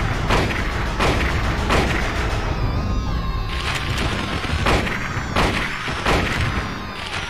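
Gunshots ring out in quick, loud bursts, each with a short echo.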